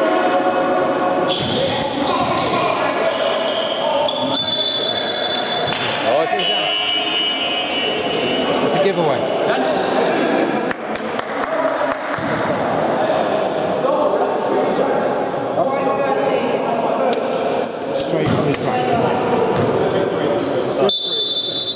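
Men call out and shout to each other across an echoing hall.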